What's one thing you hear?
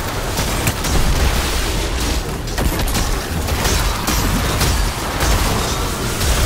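Rapid gunfire and blasts crackle loudly.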